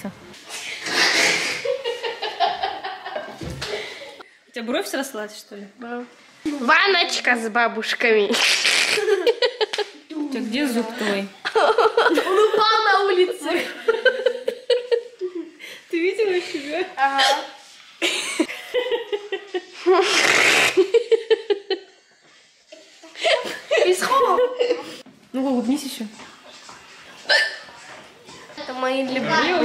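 A young girl talks excitedly and close by.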